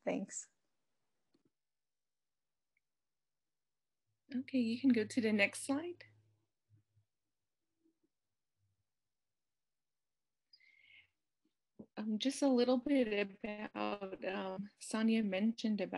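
A woman speaks calmly through an online call, pausing between phrases.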